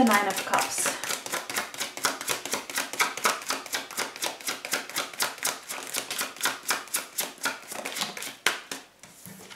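Playing cards riffle and flutter rapidly as a deck is shuffled.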